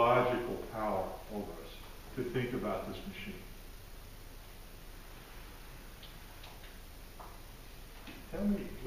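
An elderly man speaks calmly to a group.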